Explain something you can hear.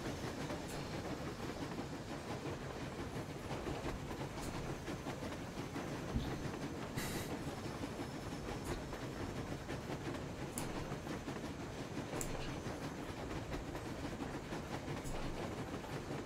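A train rumbles and rattles steadily.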